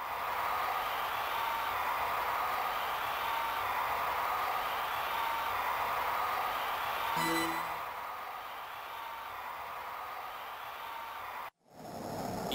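Cheerful video game music plays.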